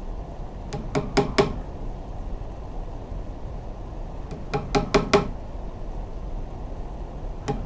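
Small metal nails click sharply as they are set down one by one.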